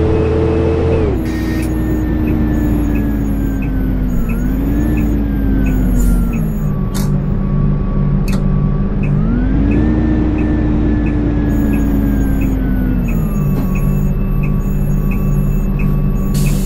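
A bus engine drones and whines, rising and falling in pitch as the bus speeds up and changes gear.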